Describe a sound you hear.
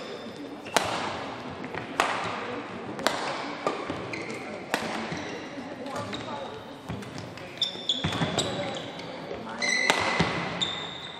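A shuttlecock is struck sharply back and forth by rackets.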